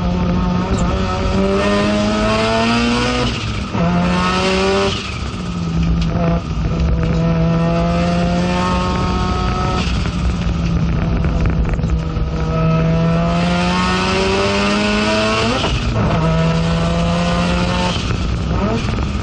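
Tyres and wind rush loudly outside the car.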